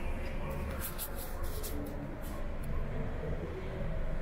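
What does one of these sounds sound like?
Footsteps tap on a tiled floor nearby.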